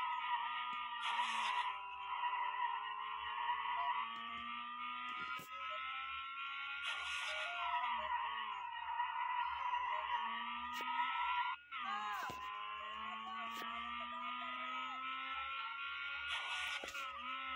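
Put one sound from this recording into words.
Tyres screech as a car drifts around corners.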